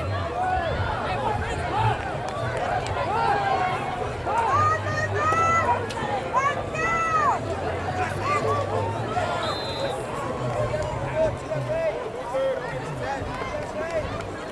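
A crowd of spectators shouts and cheers nearby outdoors.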